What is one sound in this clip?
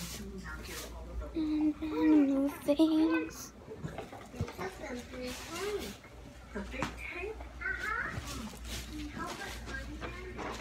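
A young girl talks and hums playfully close to the microphone.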